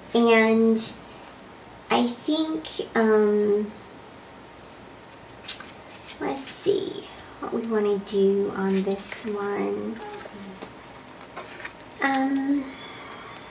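Paper cards rustle and slide against each other.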